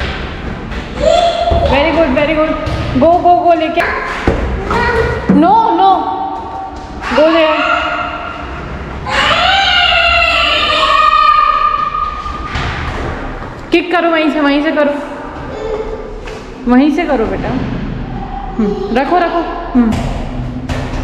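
A young child shouts and squeals with excitement in an echoing hallway.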